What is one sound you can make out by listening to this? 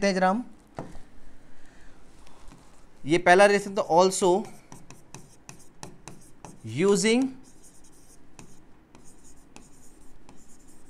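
A pen taps and scratches on a hard board.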